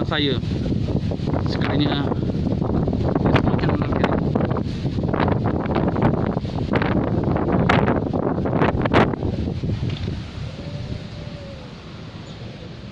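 Strong wind gusts outdoors, rustling leaves and buffeting loudly, then eases.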